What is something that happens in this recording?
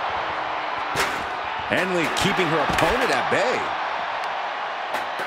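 A body slams heavily onto a hard floor.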